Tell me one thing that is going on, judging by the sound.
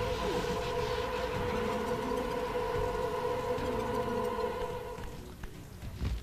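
Electric energy hums and crackles steadily.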